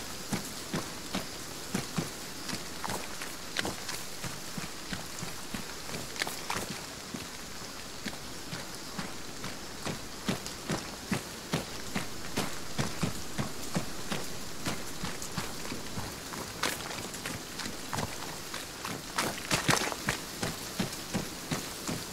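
Footsteps crunch steadily over leaves and forest ground.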